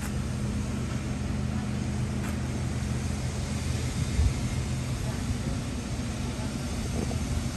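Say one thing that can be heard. A pickup truck's engine idles nearby with a steady low rumble.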